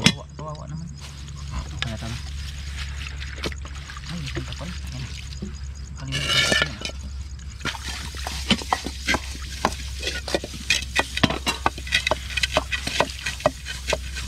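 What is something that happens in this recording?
Water splashes as dishes are rinsed.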